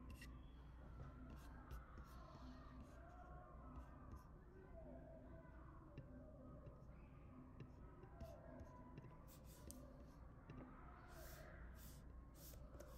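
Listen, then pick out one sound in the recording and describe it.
An electronic keyboard plays a slow melody of notes.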